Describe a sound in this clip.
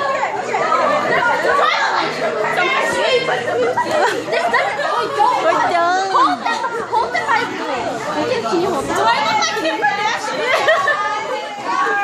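Several girls talk and laugh excitedly together close by.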